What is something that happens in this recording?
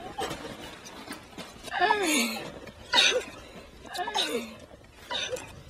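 A woman exclaims with joy close by.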